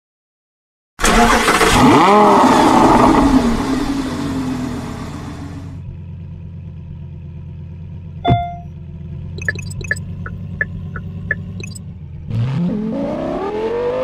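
A car engine starts and idles with a low rumble.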